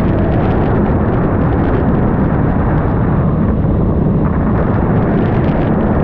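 Wind roars loudly past the rider.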